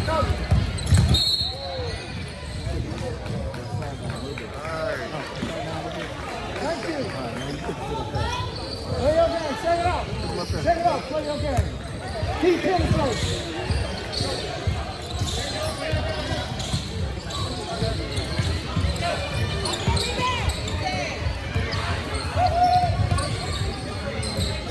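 Young men and boys shout and call out across the court.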